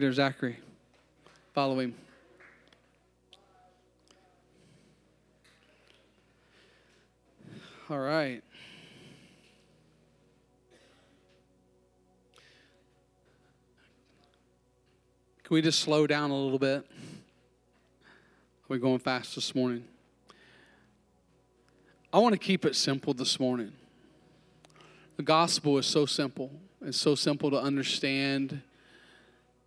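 A man speaks through a microphone in bursts, his voice echoing in a large hall.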